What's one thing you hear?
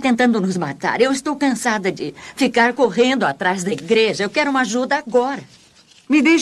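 A woman speaks tearfully, close by.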